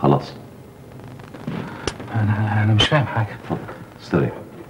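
A middle-aged man speaks in short bursts, close by.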